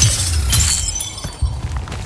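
Magical energy crackles and hums.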